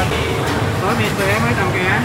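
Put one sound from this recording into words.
A metal noodle strainer knocks and clatters against a pot.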